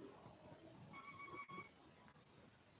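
An electronic toy beeps as its button is pressed.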